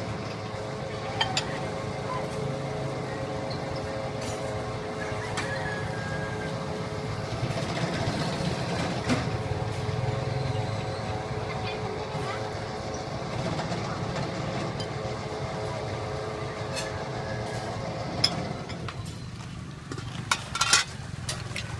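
A metal ladle clinks against a cooking pot.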